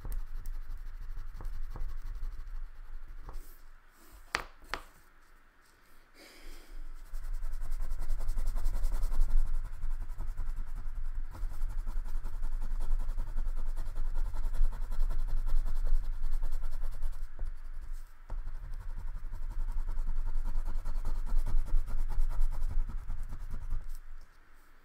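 A crayon scratches back and forth on paper in quick strokes.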